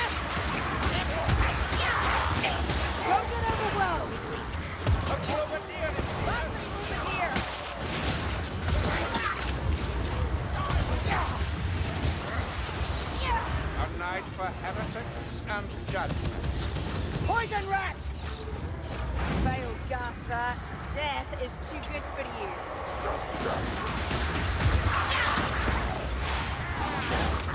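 Blades slash and thud into bodies in quick, repeated hits.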